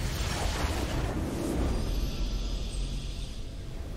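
A triumphant fanfare swells.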